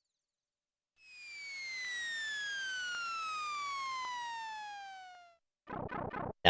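A video game plays a long falling whistle.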